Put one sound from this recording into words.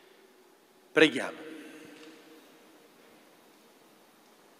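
A choir sings in a large echoing hall.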